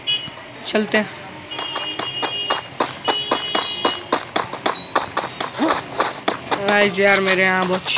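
Quick footsteps run across grass.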